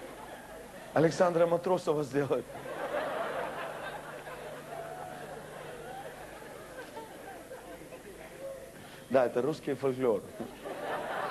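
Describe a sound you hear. A man speaks loudly in short bursts into a microphone.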